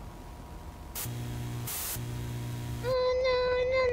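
Television static hisses and buzzes.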